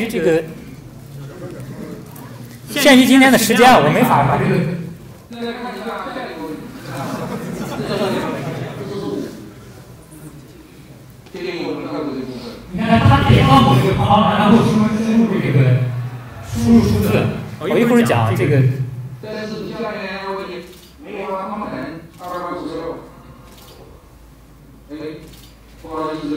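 A man speaks steadily into a microphone, heard through loudspeakers.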